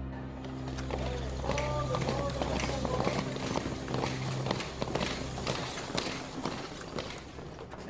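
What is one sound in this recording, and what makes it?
Many boots march in step on pavement.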